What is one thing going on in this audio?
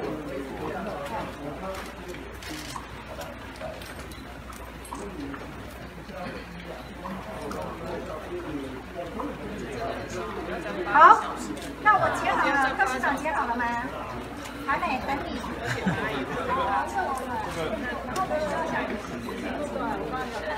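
Young women and men chat and talk over each other close by.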